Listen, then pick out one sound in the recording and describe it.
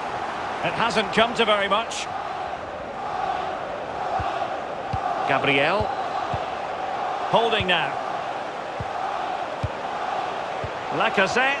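A large crowd murmurs and chants steadily in a stadium.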